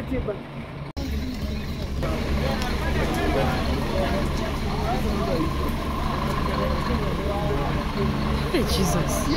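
A crowd murmurs outdoors at night.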